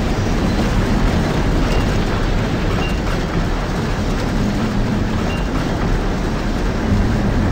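Strong wind roars loudly outdoors.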